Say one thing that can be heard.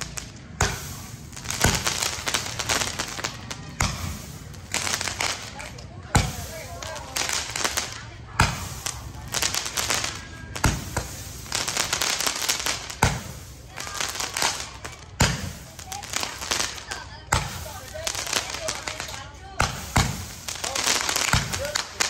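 Fireworks crackle and fizz in rapid bursts overhead.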